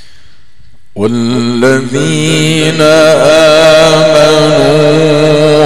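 A man chants loudly through a microphone and loudspeakers.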